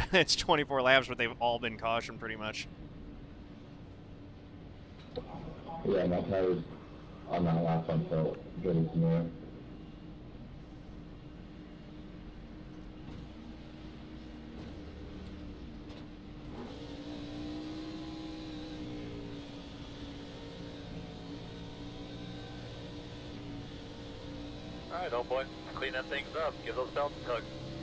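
Racing car engines drone steadily.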